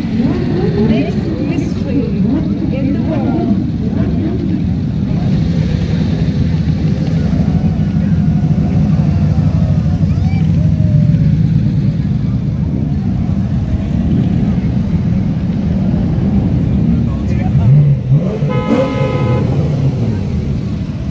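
Sports car engines idle and rumble deeply close by.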